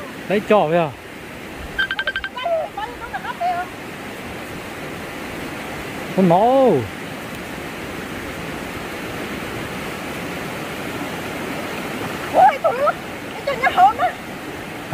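Water swishes softly as someone wades through a stream.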